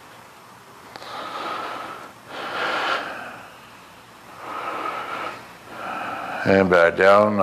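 A man breathes out heavily in slow, long breaths.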